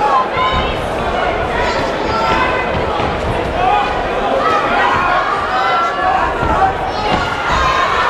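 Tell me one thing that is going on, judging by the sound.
Boxing gloves thud against a body and head.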